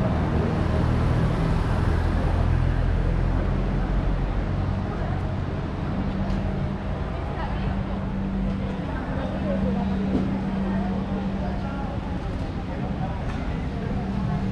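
City traffic hums steadily in the distance.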